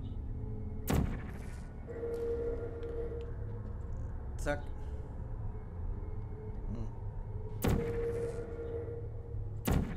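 A sci-fi gun fires with sharp zaps.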